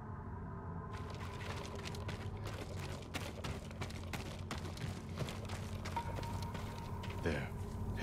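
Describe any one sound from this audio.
Footsteps rustle through tall grass outdoors.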